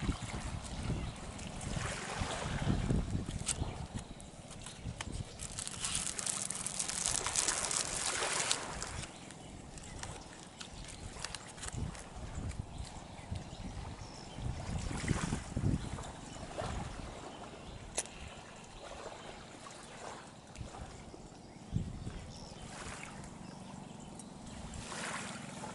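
Small waves lap gently against a shore.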